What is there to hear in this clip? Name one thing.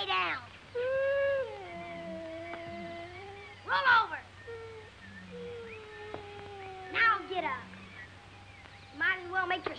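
Bears let out high, wavering whining cries.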